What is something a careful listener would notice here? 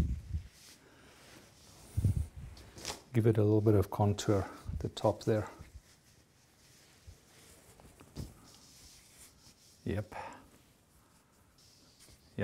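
Fabric rustles as a jersey is folded and handled.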